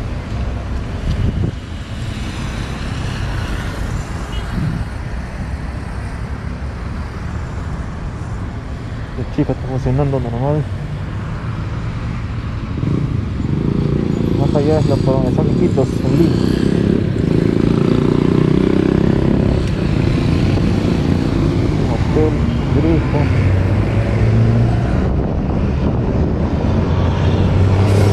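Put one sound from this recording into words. Traffic hums along a wide street nearby.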